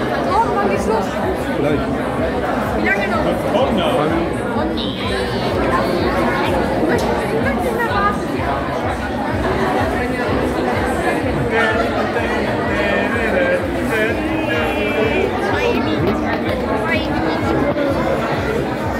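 A crowd of men and women chatters loudly in a large echoing hall.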